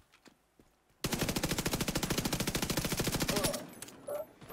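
Rapid automatic gunfire rattles in a fast, steady burst.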